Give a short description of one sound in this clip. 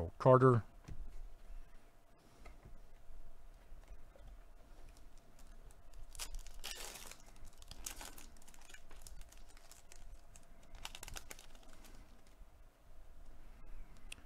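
A foil wrapper crinkles as it is handled and torn open.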